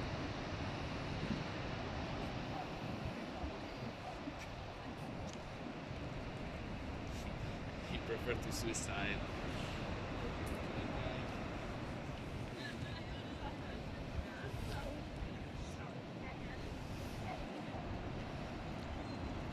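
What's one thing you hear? Surf roars steadily far below.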